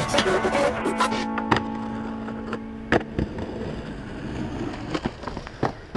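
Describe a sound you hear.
A skateboard clatters as it lands and rolls on concrete.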